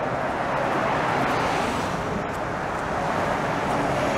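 A tram rolls past close by.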